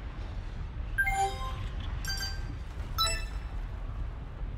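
Bright chiming tones ring out in quick succession.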